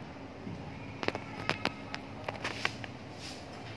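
A notebook page rustles and crackles as it is handled.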